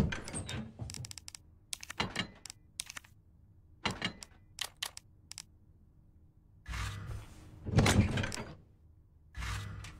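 Short menu clicks tick in quick succession.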